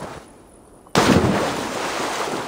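A body plunges into water with a splash.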